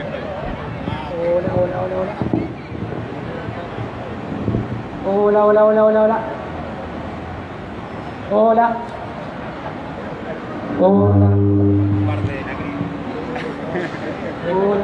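Street noise murmurs steadily in the background.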